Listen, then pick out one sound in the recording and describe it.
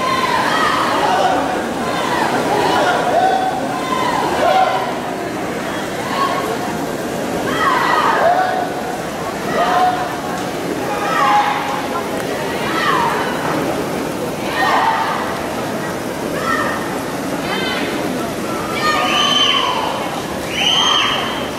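Swimmers splash steadily through the water in an echoing indoor pool.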